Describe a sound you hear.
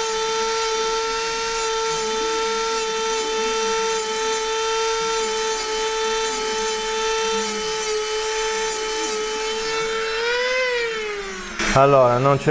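A small rotary tool whines steadily while grinding metal, then winds down.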